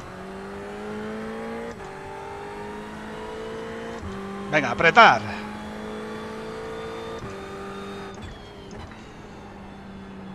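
A racing car engine drones, rising in pitch and dropping with each gear change.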